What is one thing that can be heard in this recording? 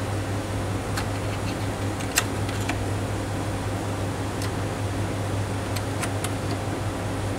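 Small plastic parts click as a hand loads them into a machine.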